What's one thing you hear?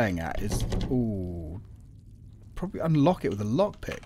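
A locked door handle rattles.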